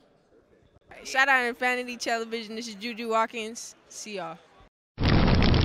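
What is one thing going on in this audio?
A young woman talks cheerfully into a handheld microphone.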